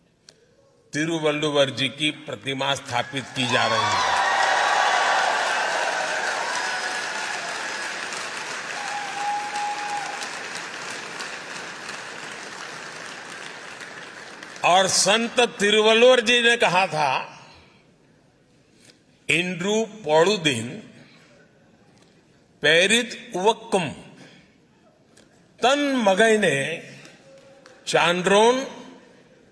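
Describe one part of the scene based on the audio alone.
An elderly man speaks with animation through a microphone in a large hall.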